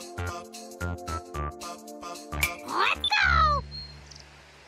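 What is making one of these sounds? A short, bright video game jingle plays and ends with a swooping sound.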